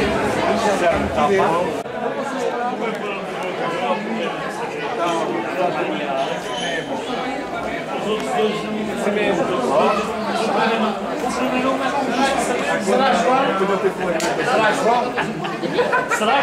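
A crowd of men and women chatter and talk over one another close by, outdoors.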